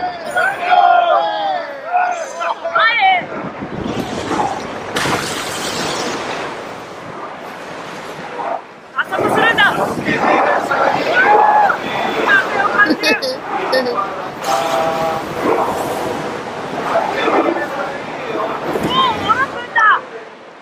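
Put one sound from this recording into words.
Waves splash against the hull of a sailing ship.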